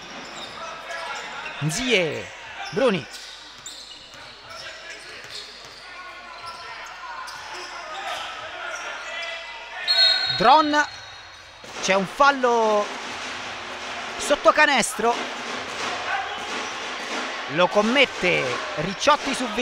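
Spectators murmur and call out in a large echoing hall.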